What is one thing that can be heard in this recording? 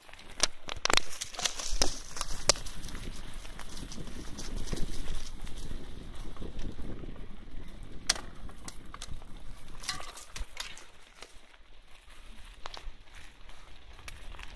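Footsteps crunch quickly on dry leaves.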